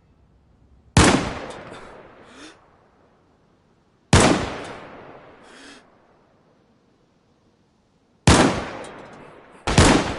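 A rifle fires loud single shots that echo and fade.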